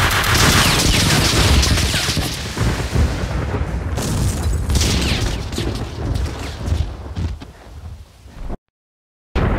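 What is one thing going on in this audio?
Gunshots blast loudly in quick bursts.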